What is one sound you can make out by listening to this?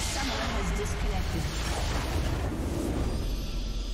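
A huge magical explosion booms and rumbles.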